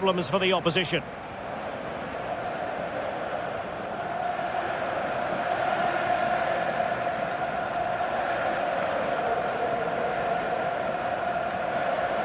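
A large stadium crowd roars and chants steadily, growing louder.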